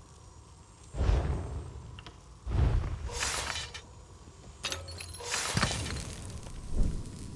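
Magical energy crackles and whooshes in bursts.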